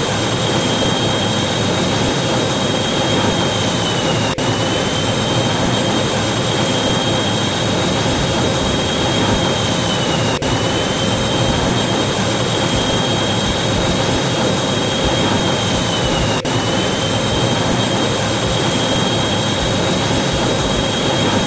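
A plane's engine drones steadily.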